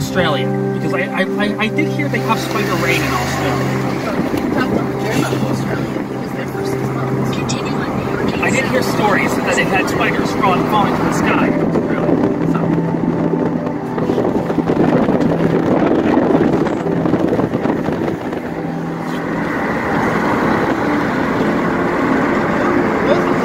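Wind rushes loudly through an open car window.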